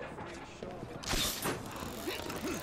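A grappling launcher fires with a sharp whoosh.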